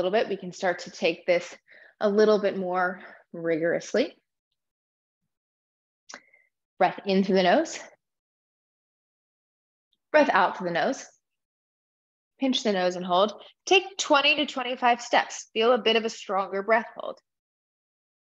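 A young woman speaks calmly and clearly into a close microphone, with pauses.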